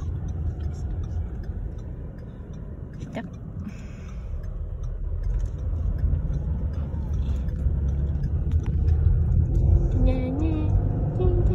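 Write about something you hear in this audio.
A car engine rumbles low and steady from inside the car as it drives.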